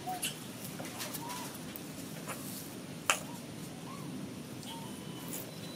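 Baby monkeys squeak softly.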